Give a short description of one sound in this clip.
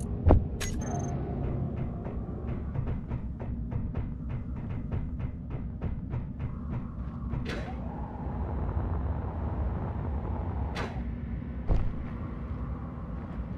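A drill grinds through rock with a steady low rumble.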